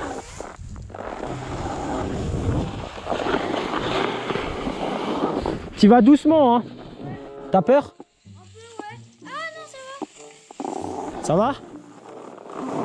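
A snowscoot slides and scrapes over packed snow.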